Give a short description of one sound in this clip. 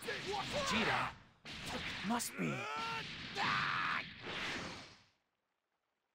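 Punches and energy blasts crash and whoosh in quick bursts.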